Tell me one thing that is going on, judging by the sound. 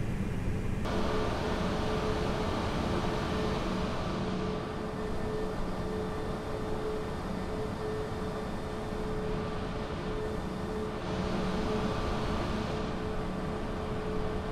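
A jet engine hums and whines steadily close by.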